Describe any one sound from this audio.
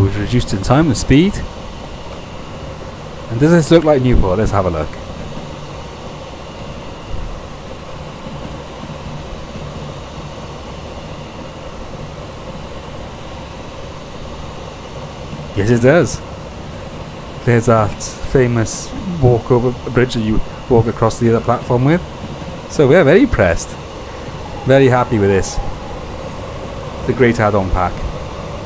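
A train engine hums steadily while rolling along the rails.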